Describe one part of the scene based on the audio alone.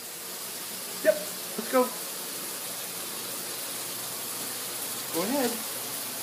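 Small dogs bark in short, sharp yaps.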